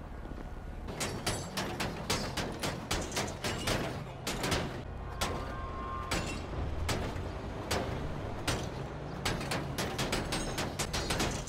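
A hammer bangs repeatedly on a car's metal body.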